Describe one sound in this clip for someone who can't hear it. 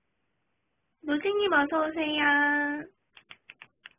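A young woman briefly sings a drawn-out note.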